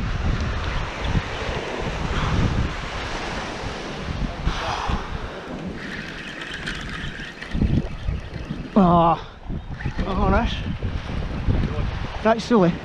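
Waves wash onto a shore nearby.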